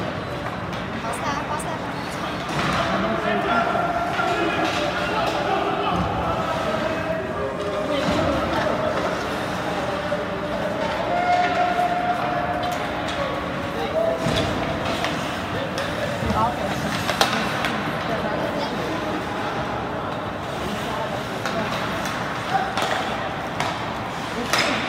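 Skates scrape across the ice in a large echoing rink.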